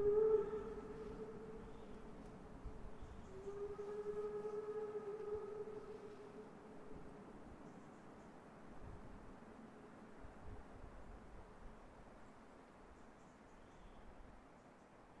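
A steam locomotive chugs and puffs steadily nearby.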